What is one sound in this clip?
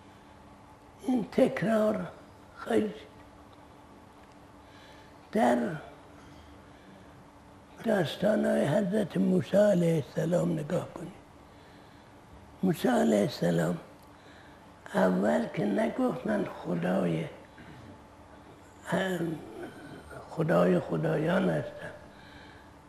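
An elderly man speaks calmly and slowly into a close microphone, in short bursts with pauses.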